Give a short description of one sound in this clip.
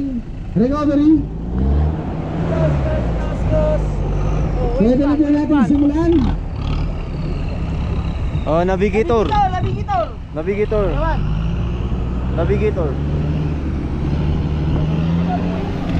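An off-road vehicle's engine rumbles and revs as it climbs a dirt slope.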